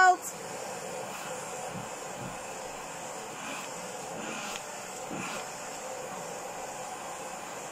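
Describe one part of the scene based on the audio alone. A vacuum hose brushes softly through a cat's fur.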